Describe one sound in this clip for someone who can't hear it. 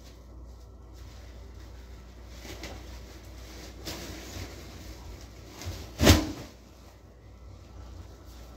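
A plastic sheet rustles and crinkles as it is unfolded.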